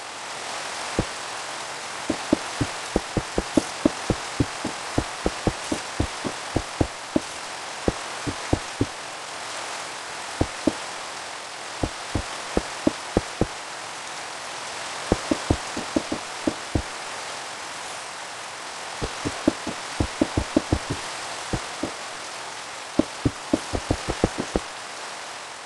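Blocks are placed with short soft thuds in a video game.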